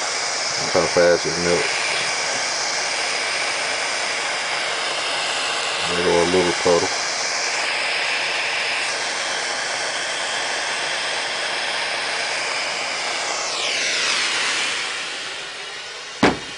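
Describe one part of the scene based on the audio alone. A gas torch roars steadily, then hisses down and cuts off.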